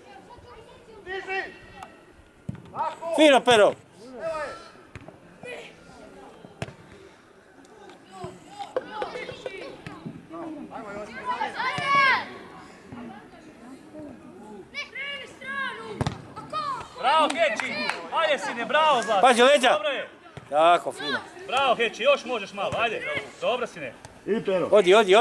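Children shout and call out excitedly across an open field.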